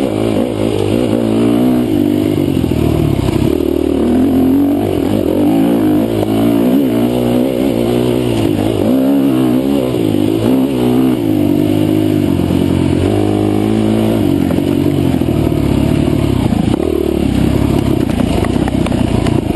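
A dirt bike engine revs up and down close by, rising and falling in pitch.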